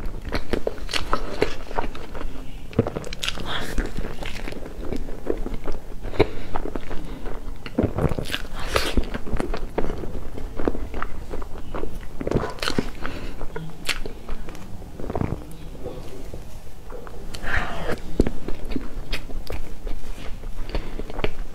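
A young woman chews food close to a microphone.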